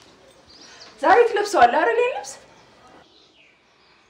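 A young woman speaks brightly and asks a question nearby.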